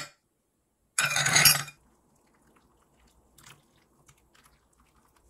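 Water pours from a kettle and splashes over teaware.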